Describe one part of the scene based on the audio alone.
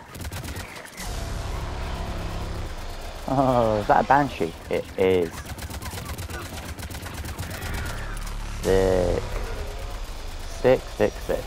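A rapid-fire gun shoots in long bursts.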